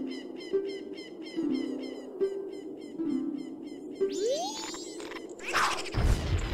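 Game music plays with a bouncy, repeating tune.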